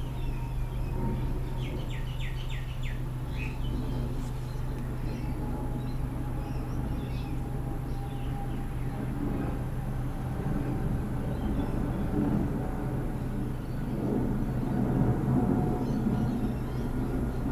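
A computer fan whirs steadily with a low hum.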